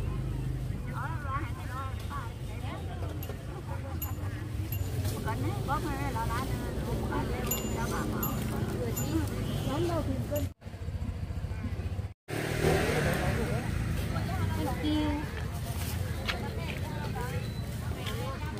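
Several women talk nearby with animation outdoors.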